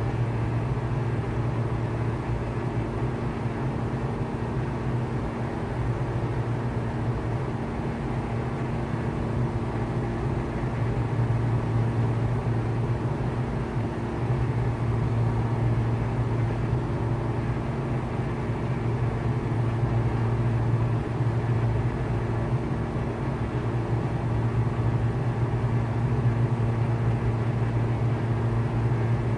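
A propeller engine drones steadily, heard from inside a small aircraft cabin.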